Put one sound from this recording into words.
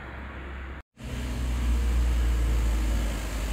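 A small road train's engine rumbles nearby.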